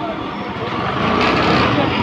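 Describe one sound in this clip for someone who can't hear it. An auto rickshaw engine putters past.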